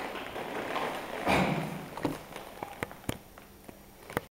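Bare feet shift and thud softly on the floor.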